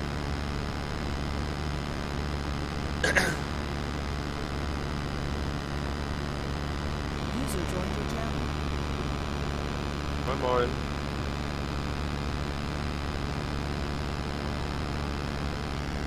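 A racing car engine idles with a steady low hum.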